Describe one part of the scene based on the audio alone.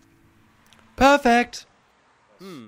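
A young man shouts out excitedly close by.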